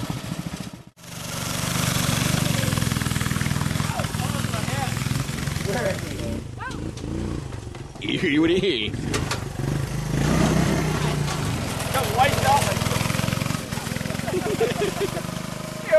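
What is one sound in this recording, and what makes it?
A small engine revs loudly as a go-kart drives over grass.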